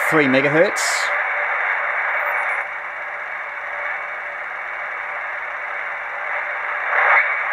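A shortwave radio hisses and crackles with static as it is tuned across the band.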